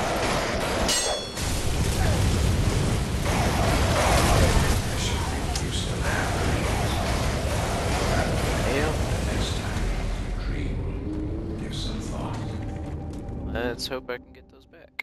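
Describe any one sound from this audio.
Metal blades clash and ring with sharp blows.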